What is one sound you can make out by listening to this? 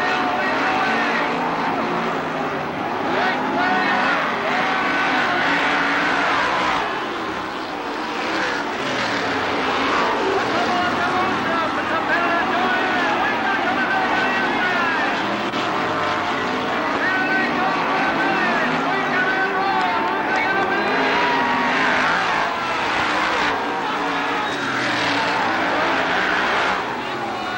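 Racing car engines roar loudly.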